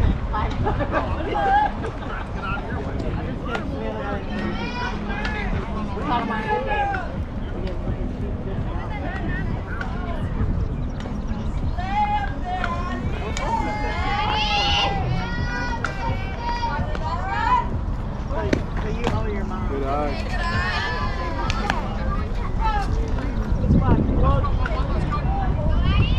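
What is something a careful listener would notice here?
Young women call out and chatter across a ball field.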